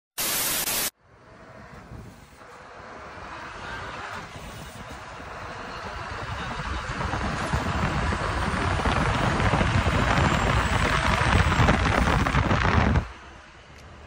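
A large truck rumbles past close by, its roar growing louder.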